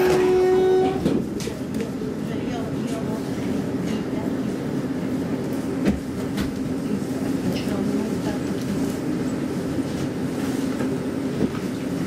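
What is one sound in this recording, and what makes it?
Tram wheels clack now and then over rail joints.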